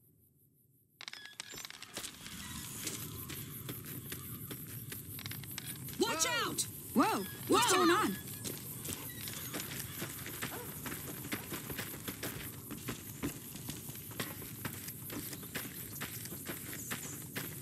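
Footsteps crunch steadily on gravel and wooden boards.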